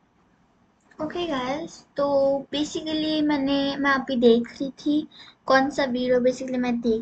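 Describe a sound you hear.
A young girl speaks with animation close to a computer microphone.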